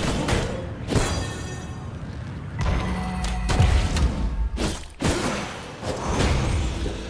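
Magical blasts and weapon strikes crackle and thump in a fight.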